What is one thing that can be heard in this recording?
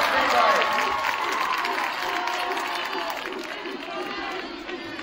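A crowd cheers and shouts in a large echoing gym, then slowly quiets.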